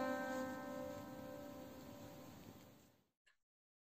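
A stringed instrument plays a sustained note that slowly fades away.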